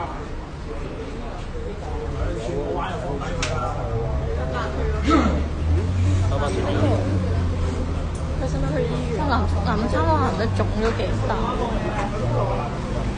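A crowd of men shout and argue nearby.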